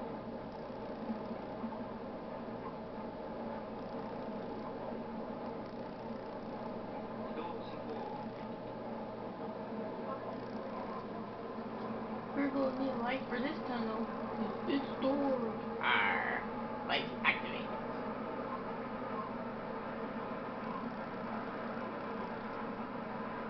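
An electric train's motors hum.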